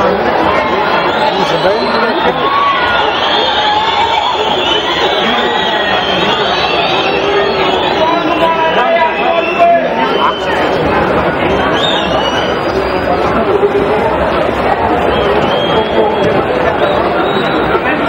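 A large stadium crowd cheers and chatters loudly throughout.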